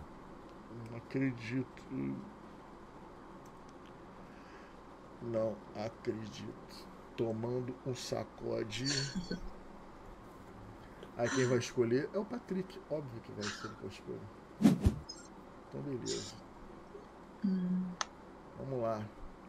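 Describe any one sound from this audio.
A man talks casually and close to a microphone, with pauses.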